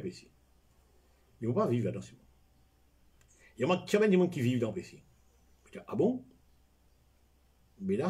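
An elderly man speaks calmly and close by, in short phrases with pauses.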